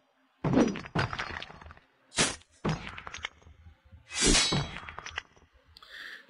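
Sword blows clash and thud in a fight.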